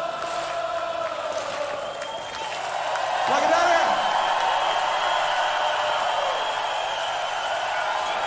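A singer holds long notes over the music.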